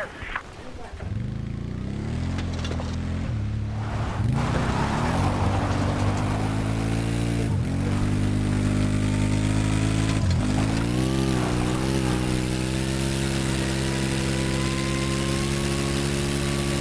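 A vehicle engine hums steadily and revs as it drives.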